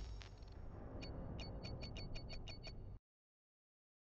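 A rapid ticking counts up quickly.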